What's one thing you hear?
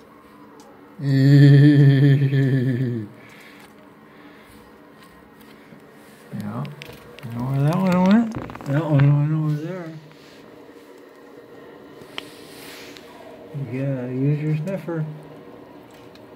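A dog whines and howls close by.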